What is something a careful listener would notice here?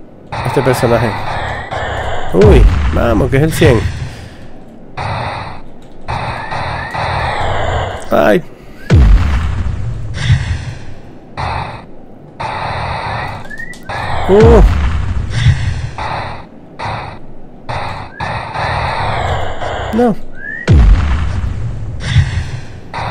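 A small rocket thruster hisses in short bursts.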